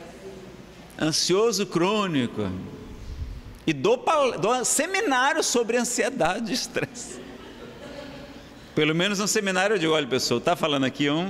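A man speaks with animation into a microphone, in an echoing hall.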